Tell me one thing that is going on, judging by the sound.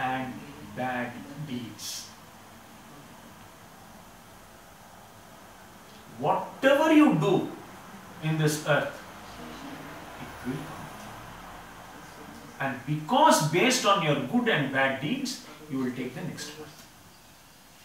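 A man talks calmly nearby, with pauses.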